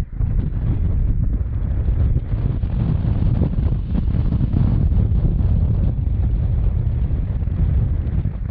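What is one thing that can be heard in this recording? Strong wind rushes and buffets loudly against a microphone.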